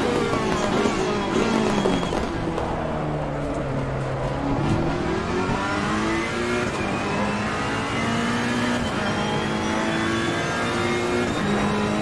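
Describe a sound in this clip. A racing car engine roars, dropping in pitch as it slows and then revving higher as it speeds up.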